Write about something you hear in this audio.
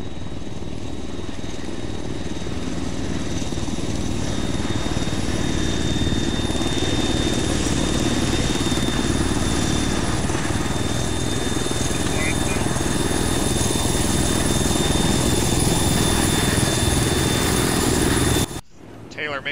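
A helicopter's rotor thumps loudly and grows closer.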